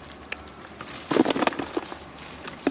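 Fish splash and flop as a basket is tipped into a plastic bucket.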